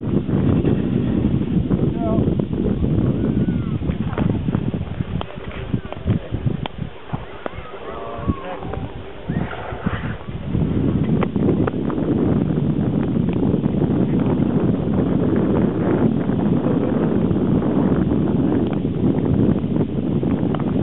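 Ice skates scrape and rasp across the ice.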